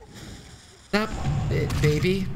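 A gun fires a shot.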